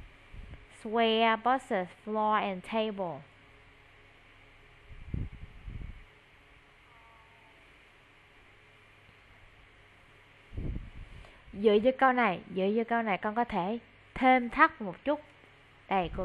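A woman speaks clearly and slowly through an online call.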